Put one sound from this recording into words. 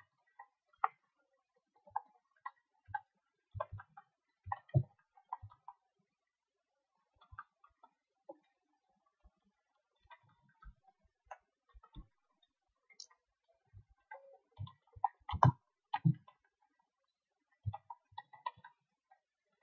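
Short game sound effects of chopping, knocking and clicking come and go.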